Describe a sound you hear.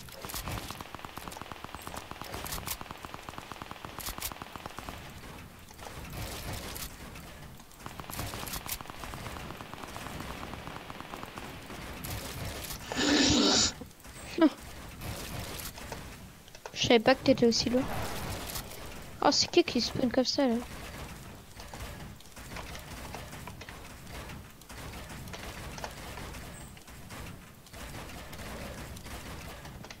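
Quick clicks and thuds of building pieces snap into place.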